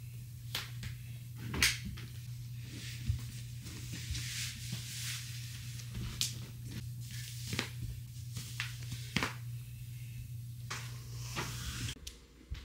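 Bare feet shuffle and step on a wooden floor.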